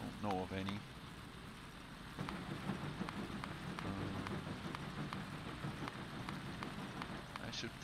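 Soft game interface clicks sound as items are queued for crafting.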